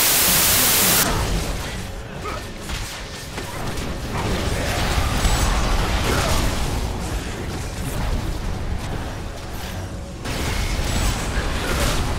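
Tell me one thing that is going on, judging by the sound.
Magic blasts and weapon hits crackle and thud in a busy fight.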